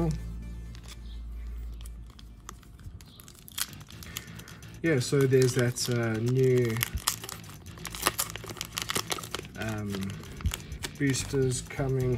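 A foil wrapper crinkles and rustles in someone's hands.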